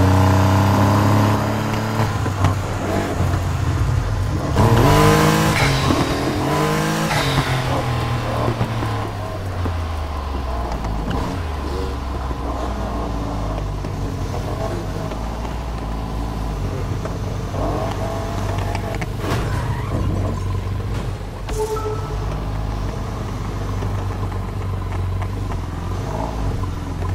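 A sports car engine roars loudly.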